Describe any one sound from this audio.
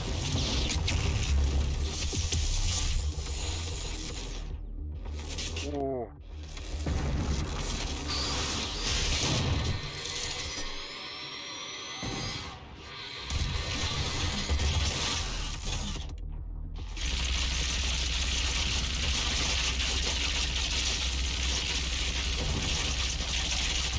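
Gunfire and explosions from a video game blast loudly.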